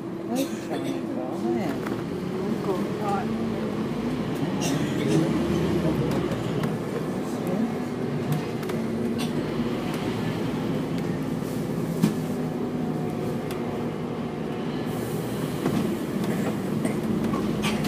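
A bus rattles and creaks inside as it moves.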